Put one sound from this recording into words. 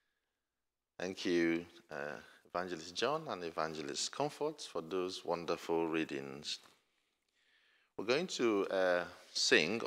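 A man speaks steadily through a microphone in an echoing hall.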